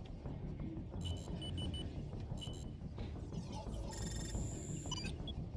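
Soft electronic beeps and chirps sound in quick bursts.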